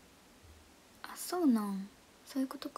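A young woman speaks briefly close to a microphone.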